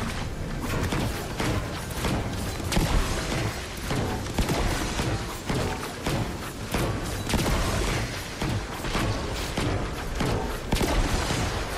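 Metal kegs clang and crack as a pickaxe strikes them.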